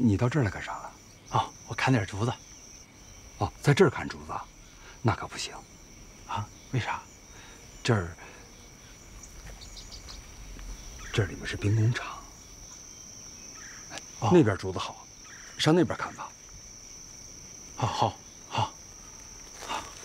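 A young man answers cheerfully nearby.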